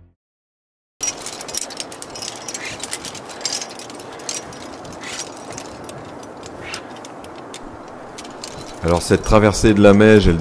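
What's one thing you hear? Hands scrape on rough rock.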